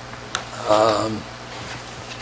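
A man speaks briefly in a room.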